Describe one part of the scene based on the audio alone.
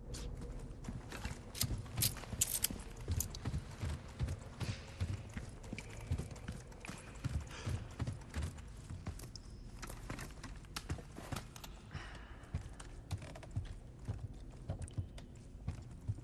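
Footsteps crunch on rocky ground at a steady pace.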